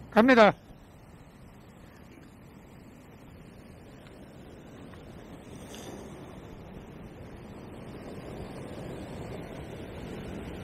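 Waves crash and wash over a rocky shore nearby.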